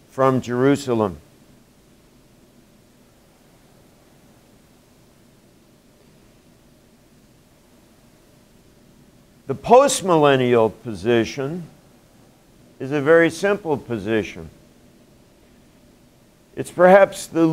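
An elderly man speaks calmly and clearly, with long pauses.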